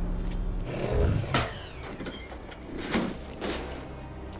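A metal panel clanks open.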